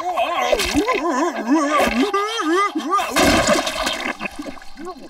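A small creature yelps and grunts.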